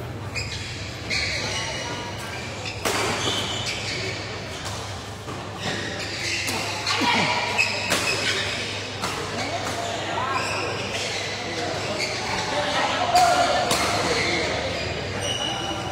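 Men shout and call out during play, in a large echoing hall.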